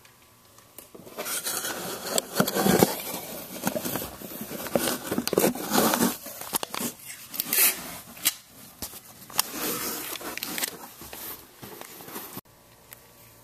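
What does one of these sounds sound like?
Cardboard rustles and scrapes close by as a box is handled.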